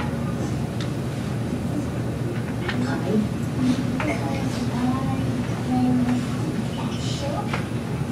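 A woman speaks with animation through loudspeakers in a large room.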